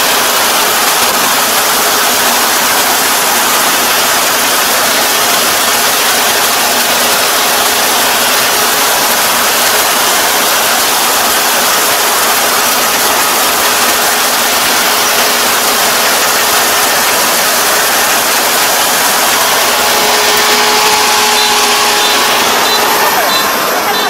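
A combine harvester engine roars steadily close by.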